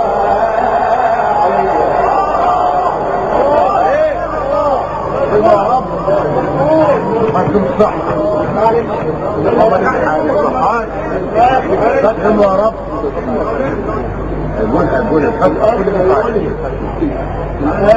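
A young man chants in a melodic, wavering voice through a loudspeaker, with echo.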